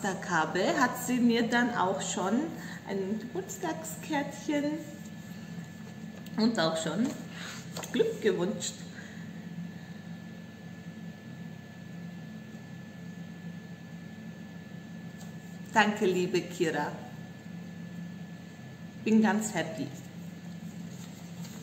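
A woman speaks warmly and close to a microphone, with pauses.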